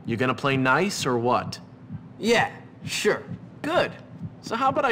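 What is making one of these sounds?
A young man speaks tensely and angrily, close by.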